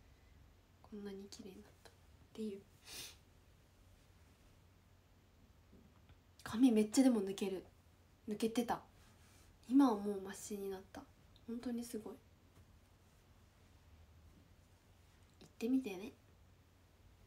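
A young woman talks casually and close by, in short bursts with pauses.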